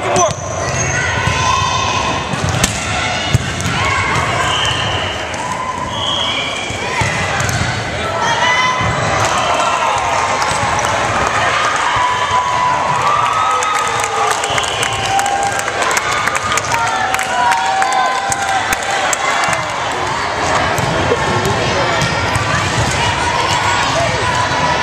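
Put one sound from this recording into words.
Girls' voices call and chatter throughout a large echoing gym.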